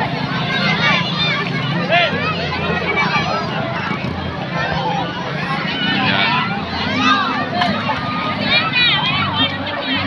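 Children shout and squeal while playing in the water.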